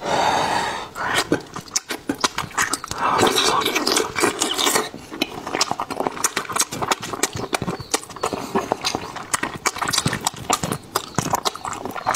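A man chews and crunches food close to a microphone, with wet smacking sounds.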